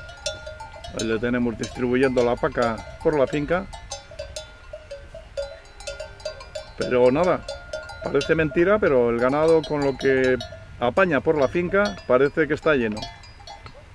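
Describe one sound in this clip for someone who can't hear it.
A man speaks outdoors.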